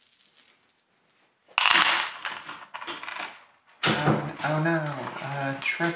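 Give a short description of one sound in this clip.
Dice rattle and clatter onto a tray.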